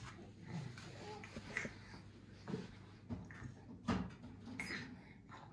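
A baby babbles softly nearby.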